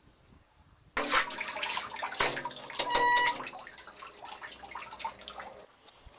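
A metal chain rattles and squeaks.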